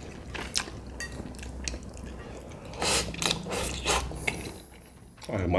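A man slurps and chews noodles close to a microphone.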